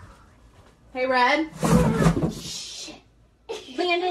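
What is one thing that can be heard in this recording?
A child laughs close by.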